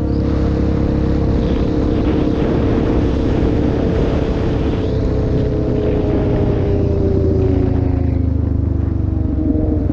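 A motorcycle engine drones steadily at speed, its pitch drifting slowly.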